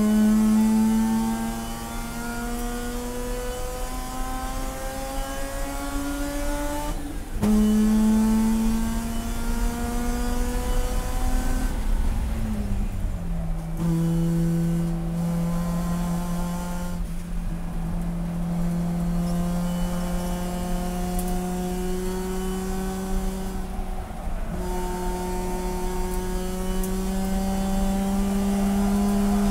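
A race car engine roars loudly, revving up through the gears and dropping between shifts.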